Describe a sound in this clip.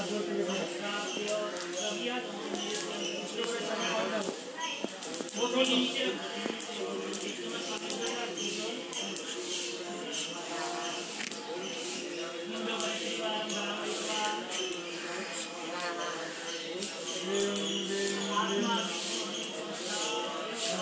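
A man chants steadily nearby.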